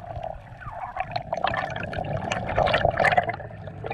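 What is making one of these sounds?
Air bubbles gurgle and rush up close underwater.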